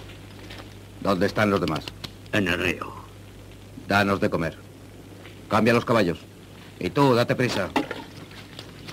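A man speaks firmly and slowly, close by.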